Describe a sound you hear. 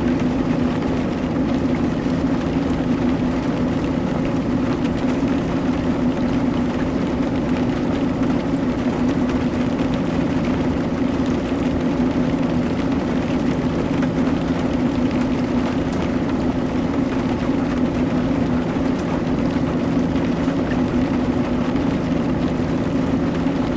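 A truck's diesel engine drones steadily at a constant pace.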